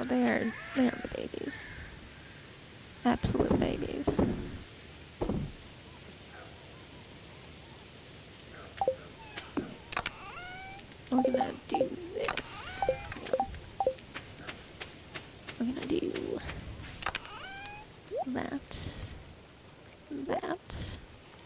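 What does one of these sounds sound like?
Short soft clicks and blips sound as menus open and items are moved.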